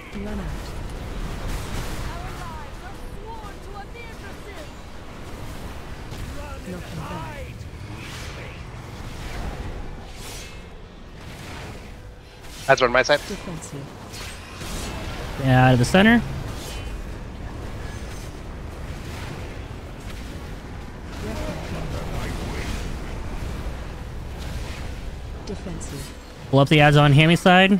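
Magic spells and weapon blows crackle and whoosh throughout a busy battle.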